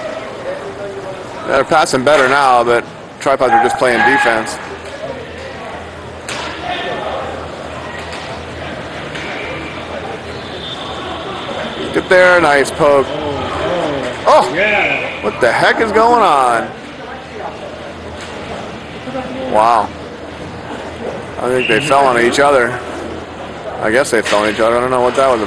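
Roller skate wheels roll across a hard rink floor in a large echoing hall.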